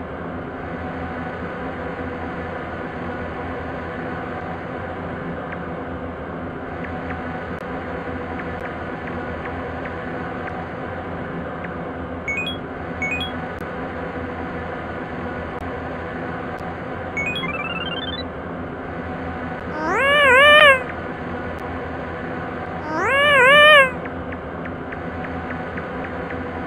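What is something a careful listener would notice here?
Soft, looping electronic game music plays steadily.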